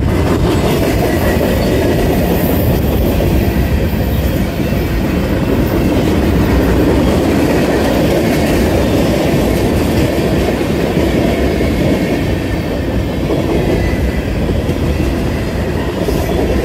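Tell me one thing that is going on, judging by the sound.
Freight train cars rumble and clatter loudly along the rails close by.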